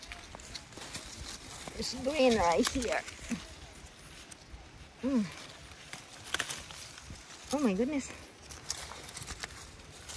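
Leaves rustle close by.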